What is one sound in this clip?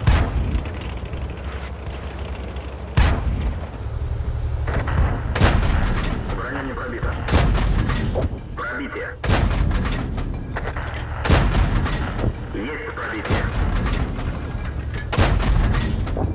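Tank cannons fire with loud booming blasts, again and again.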